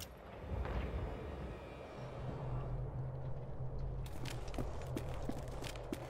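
A chain-link gate rattles as it swings open.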